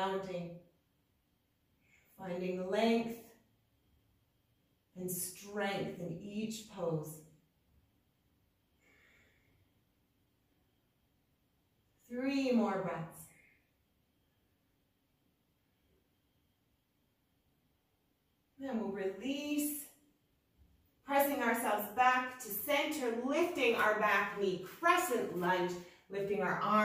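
A woman speaks calmly and steadily, giving instructions close by, in short phrases with pauses.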